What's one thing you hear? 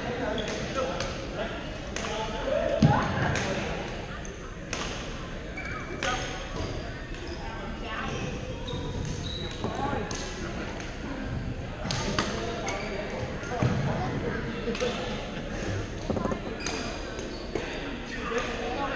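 Paddles smack balls in quick rallies, echoing around a large hall.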